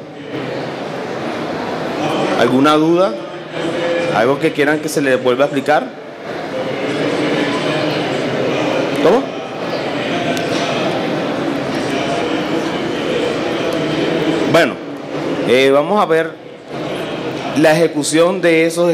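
A man speaks calmly through a microphone in a large, echoing hall.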